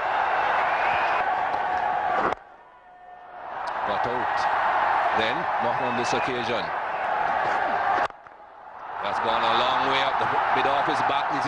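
A large stadium crowd cheers and roars outdoors.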